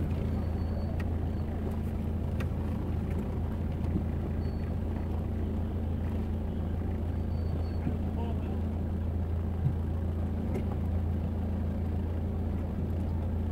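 A car engine idles steadily in slow traffic.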